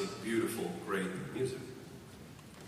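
A man speaks animatedly through a microphone in a large echoing hall.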